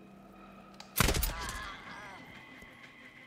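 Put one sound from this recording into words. A rifle fires a single loud shot that rings out and fades.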